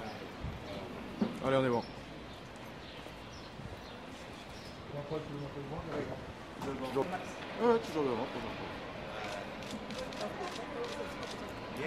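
Several men talk nearby.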